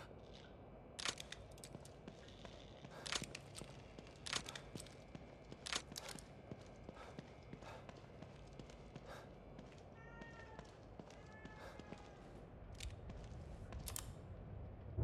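Footsteps tread on a hard floor at an even pace.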